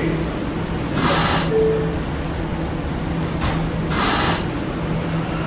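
Air brakes hiss in short bursts.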